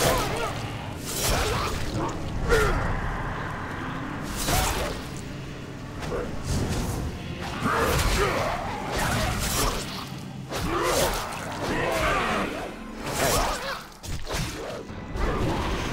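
Magic blasts and weapon impacts crash again and again.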